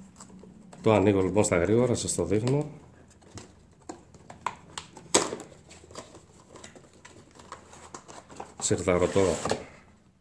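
A cardboard box scrapes and rustles as it is opened by hand.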